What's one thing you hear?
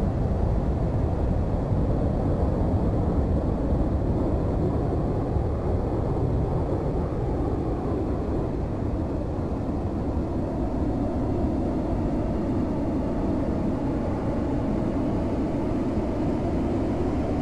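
A jet engine roars steadily with a low, even rumble.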